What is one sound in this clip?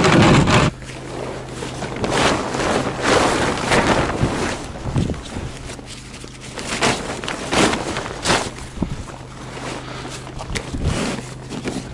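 Plastic tarps crinkle and rustle as they are handled.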